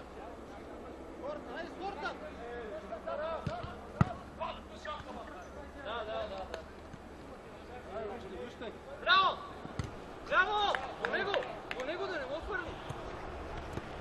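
Men shout to each other outdoors during a football game.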